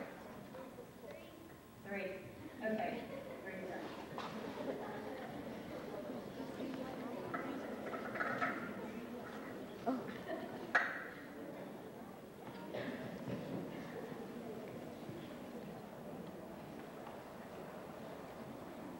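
An audience murmurs and chatters in a large hall.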